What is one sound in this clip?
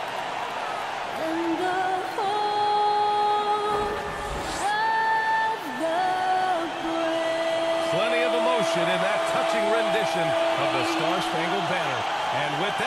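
A woman sings loudly through a microphone in a large echoing arena.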